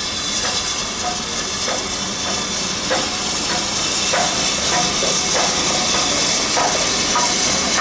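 A steam tank locomotive approaches.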